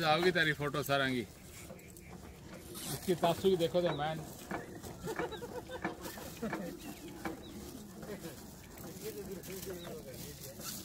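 Carrots clatter softly as they are sorted by hand into plastic sacks.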